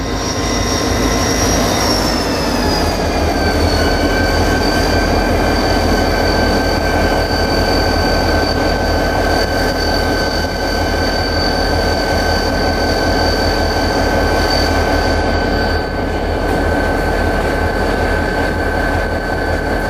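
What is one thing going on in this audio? A diesel locomotive engine rumbles and whines steadily close by.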